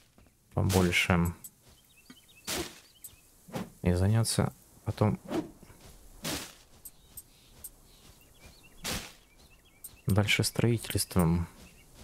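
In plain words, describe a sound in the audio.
A character strikes with a sharp whoosh.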